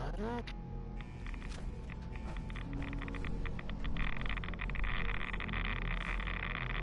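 An electric energy field crackles and buzzes, growing louder.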